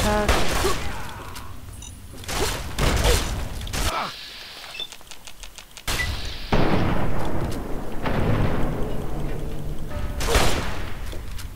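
A shotgun fires loud blasts that echo in a tunnel.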